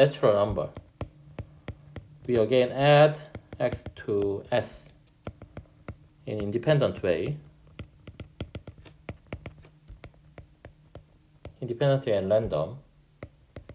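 A stylus taps and scratches lightly on a tablet.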